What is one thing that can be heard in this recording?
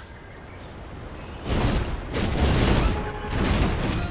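Feet splash through shallow water.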